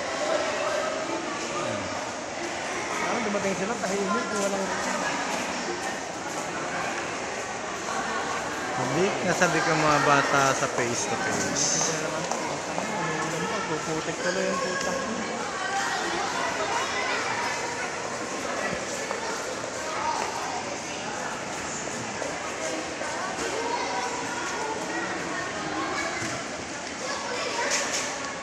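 Many young people chatter in a large echoing hall.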